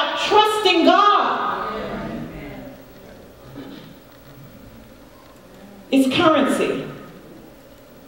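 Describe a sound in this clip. A woman preaches with animation through a microphone in a large echoing hall.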